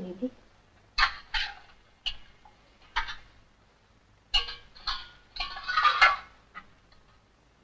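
Metal utensils clink and clatter.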